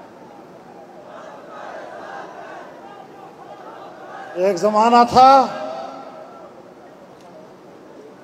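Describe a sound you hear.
An elderly man speaks forcefully through a loudspeaker, echoing outdoors.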